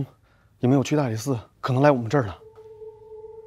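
A man speaks emphatically, close by.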